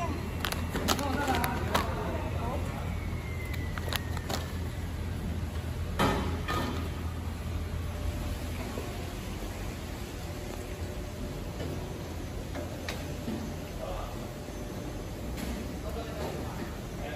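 Packing machines hum and clatter steadily in a large hall.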